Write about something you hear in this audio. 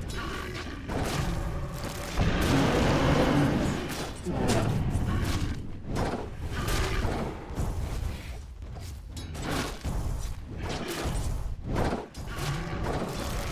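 Game combat sound effects clash, crackle and boom.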